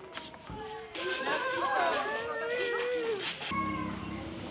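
Children shout and squeal while playing outdoors.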